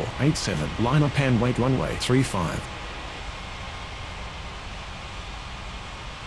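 A jet airliner's engines hum steadily.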